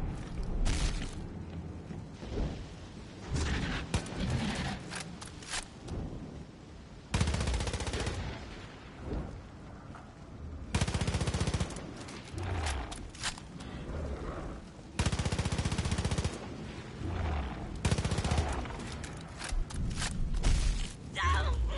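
A huge monster roars in loud bursts.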